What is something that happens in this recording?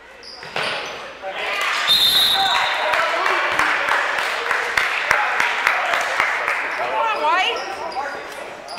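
A crowd cheers loudly in an echoing gym.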